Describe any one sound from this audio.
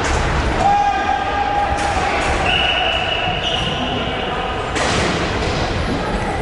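Hockey sticks clack against a ball and each other.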